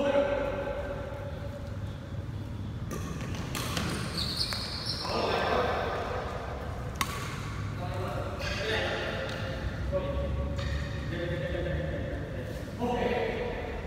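Sneakers squeak on a hard indoor floor.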